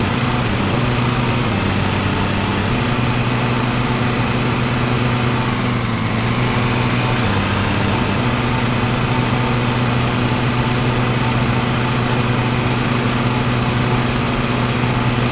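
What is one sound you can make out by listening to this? A riding lawn mower engine hums steadily while cutting grass.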